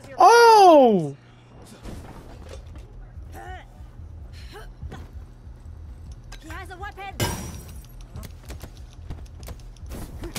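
Blows land with dull thuds in a fistfight.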